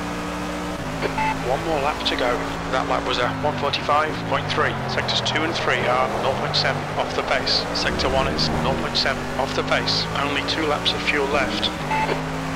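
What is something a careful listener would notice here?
Tyres squeal around corners.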